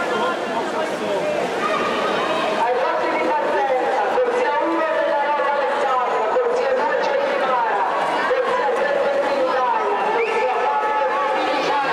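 A crowd cheers and shouts loudly in an echoing indoor pool hall.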